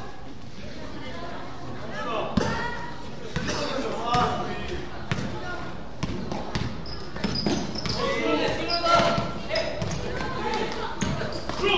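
A crowd of children chatters and shouts in a large echoing hall.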